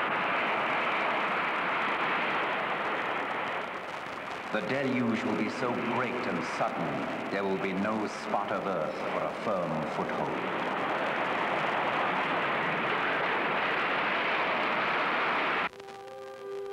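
A huge rush of floodwater roars and crashes.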